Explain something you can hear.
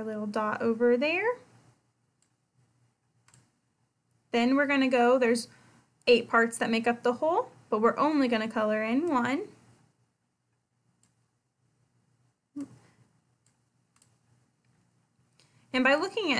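A young woman speaks calmly and clearly into a close microphone, pausing now and then.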